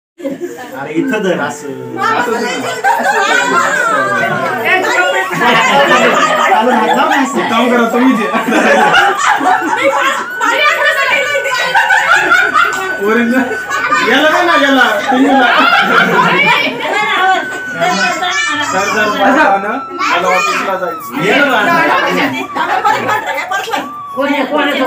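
Several young women and girls chatter and laugh together close by.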